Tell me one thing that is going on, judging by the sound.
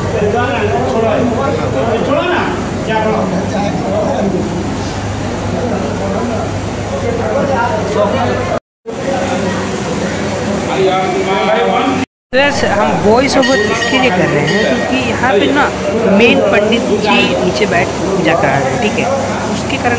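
A crowd of men and women talk and chant loudly nearby.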